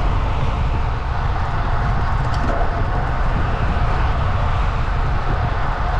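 A car passes by on a nearby road.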